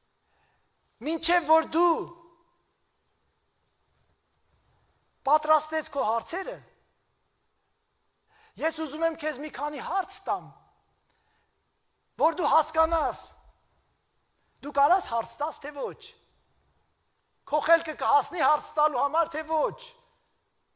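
An elderly man preaches with animation through a microphone in an echoing hall, pausing between phrases.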